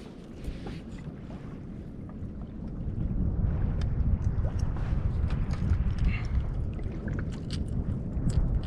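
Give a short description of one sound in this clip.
Small waves lap against the side of a rubber boat.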